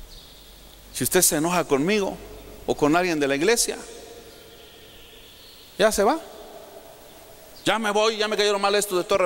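A man speaks with animation into a microphone over loudspeakers in an echoing hall.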